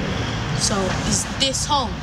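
A young woman speaks calmly close by.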